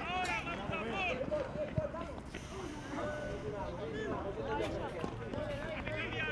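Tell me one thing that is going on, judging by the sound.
Young boys shout to each other across an open outdoor field.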